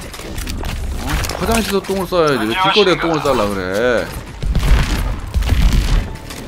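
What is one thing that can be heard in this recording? Game gunfire pops in quick bursts.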